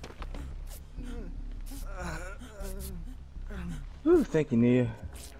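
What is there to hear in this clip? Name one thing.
A woman pants and groans in pain.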